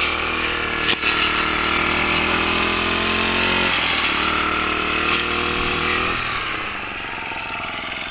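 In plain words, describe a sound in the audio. A trimmer line whips and cuts through grass.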